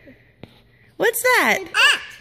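A little girl squeals and laughs loudly close by.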